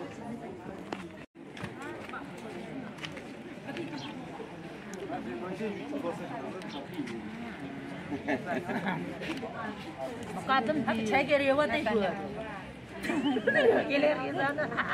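A group of adults chat over one another outdoors.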